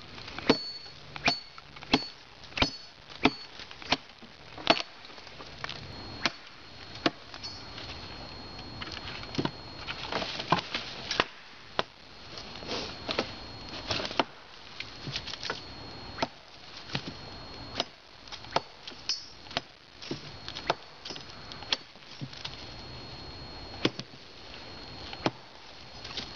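An axe chops into wood with sharp, repeated blows.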